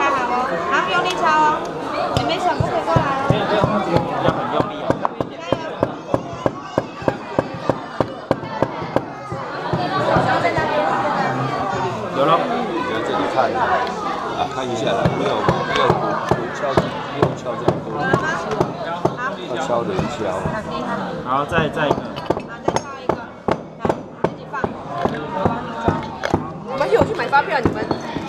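A young girl taps a small hammer in quick, sharp knocks.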